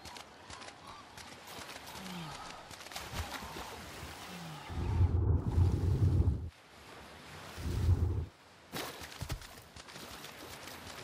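Waves wash and splash against rocks.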